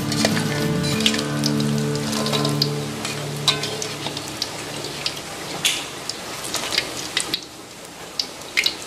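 Hot oil sizzles and crackles steadily.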